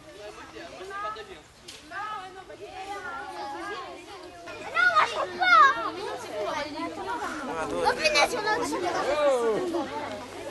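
Children chatter and call out to each other nearby, outdoors.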